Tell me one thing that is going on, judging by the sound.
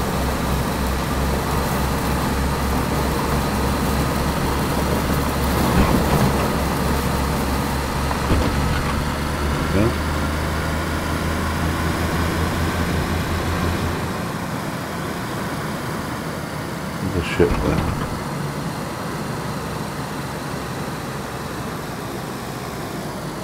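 Tyres rumble as a car rolls along.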